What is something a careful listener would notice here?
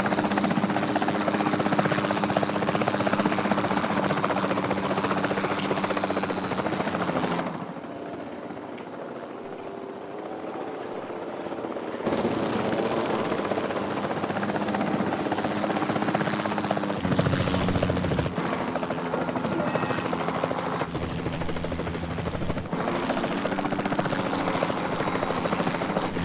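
A helicopter's rotor thumps and whirs steadily.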